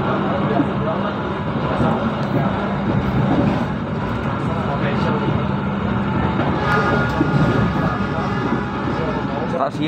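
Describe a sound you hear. A train rumbles and rattles steadily along the tracks.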